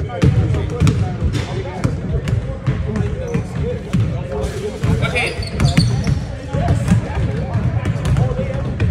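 Basketballs bounce repeatedly on a wooden court in a large echoing gym.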